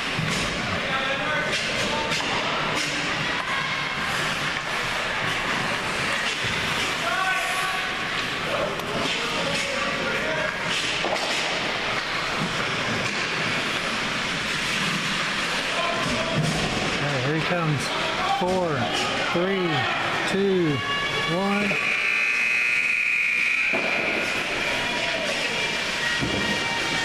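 Skates scrape and hiss across the ice in a large echoing rink.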